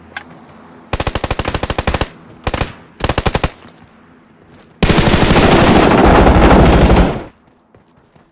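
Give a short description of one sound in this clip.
A rifle fires in rapid bursts, loud and close.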